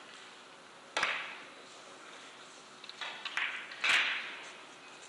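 Billiard balls clack against each other and thud off the cushions.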